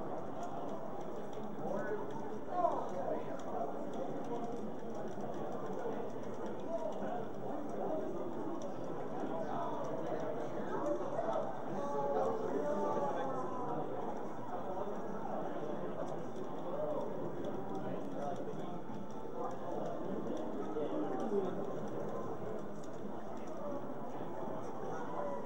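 A crowd of young men chatters and reacts loudly nearby.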